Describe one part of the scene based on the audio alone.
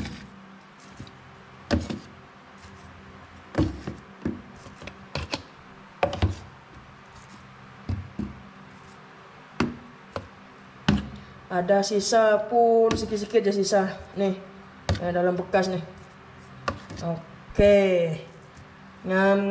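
Metal tongs clack and scrape against plastic and a metal sink.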